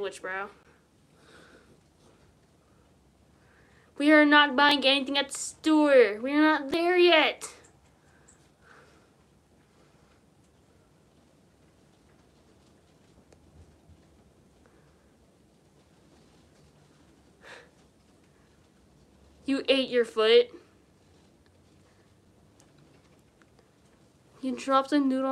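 A young girl sings in short, high, wavering bursts close by.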